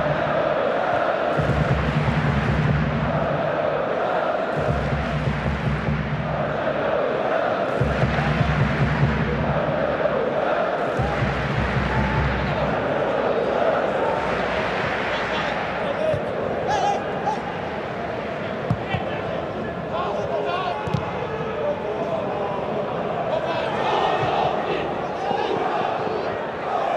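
A large stadium crowd chants and drums rhythmically.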